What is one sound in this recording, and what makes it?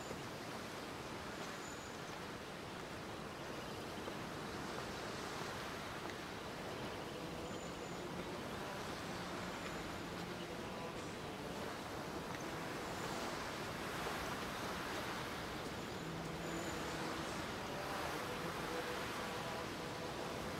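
Gentle waves wash onto a sandy shore.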